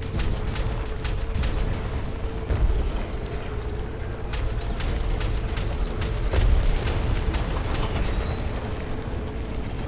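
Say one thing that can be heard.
A vehicle engine roars steadily at high speed.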